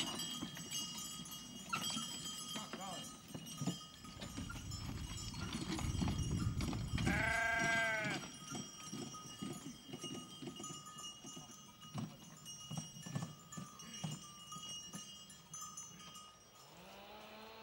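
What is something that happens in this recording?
A horse-drawn wooden cart rattles and creaks over bumpy ground.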